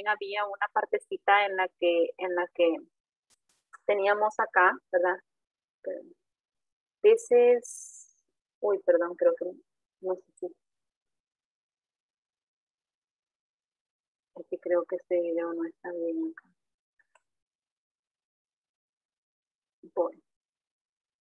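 A woman speaks calmly over an online call, explaining.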